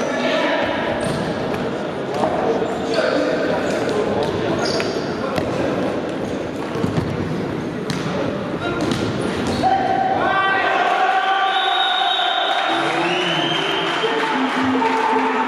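A ball is kicked with hollow thuds in a large echoing hall.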